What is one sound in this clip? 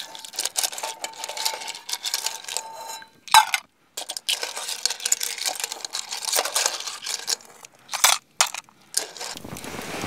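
A metal spoon clinks against a metal bowl.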